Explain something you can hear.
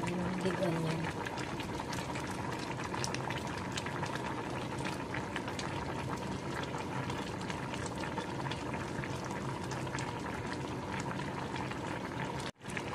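Broth bubbles and simmers steadily in a pot.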